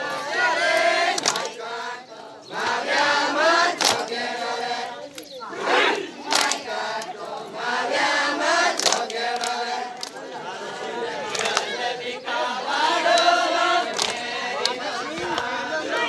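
A group of women sing together outdoors.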